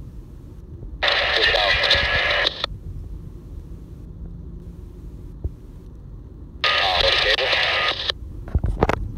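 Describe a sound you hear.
A scanner radio crackles with short bursts of static and garbled transmissions through its small speaker.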